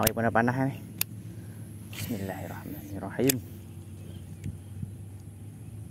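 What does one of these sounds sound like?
A fishing reel clicks and whirs.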